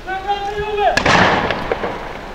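A gunshot cracks and echoes.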